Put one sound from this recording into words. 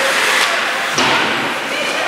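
A hockey stick smacks a puck.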